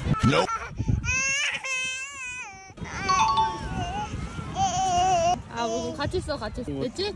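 A small child chatters in a high voice.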